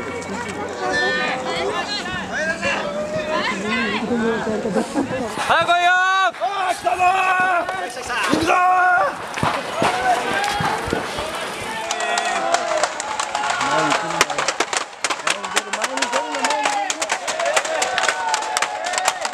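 A crowd of men shout and chant loudly together.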